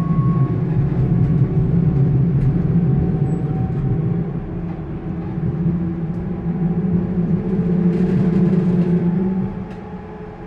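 A tram rumbles steadily along the track, with a low hum and rattle.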